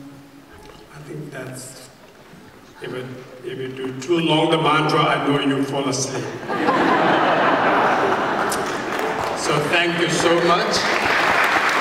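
An elderly man speaks calmly through a microphone and loudspeakers.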